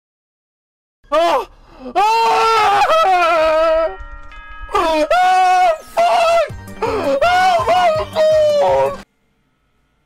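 A woman screams and shrieks with excitement close to a microphone.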